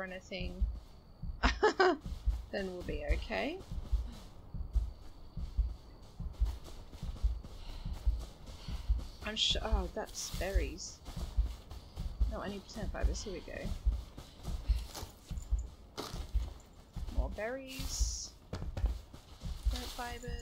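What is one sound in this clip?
Footsteps swish and thud steadily through tall grass.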